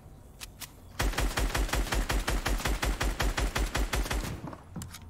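Rapid gunfire rattles in quick, steady bursts.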